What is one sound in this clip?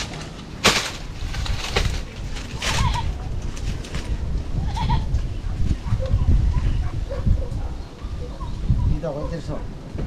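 Bamboo slats clatter and creak under a person's weight.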